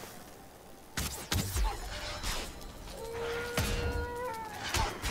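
Sharp blows land with heavy thuds.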